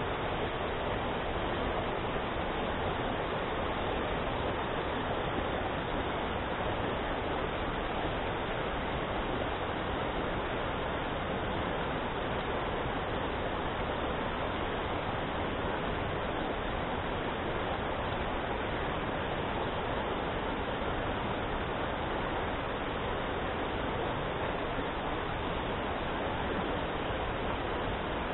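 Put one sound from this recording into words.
A shallow mountain stream rushes loudly over rocks, close by.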